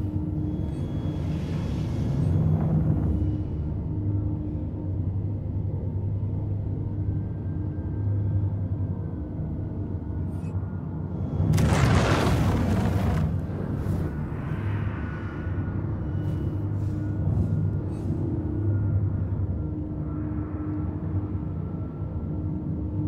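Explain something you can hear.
A spacecraft engine hums steadily in a low drone.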